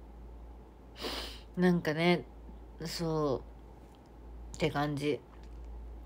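A young woman speaks softly and closely in short phrases.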